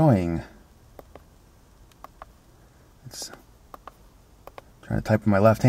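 Buttons on a small remote click.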